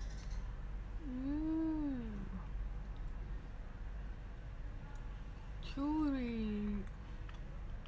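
A young woman hums with pleasure close by, as if tasting food.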